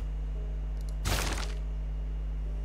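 A short whoosh sounds once.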